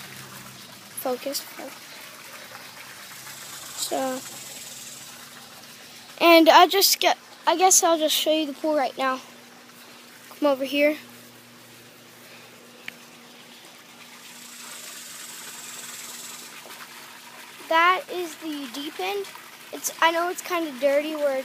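A boy talks with animation close to a phone microphone.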